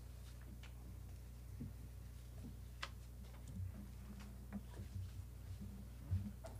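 A man walks softly across a carpeted floor.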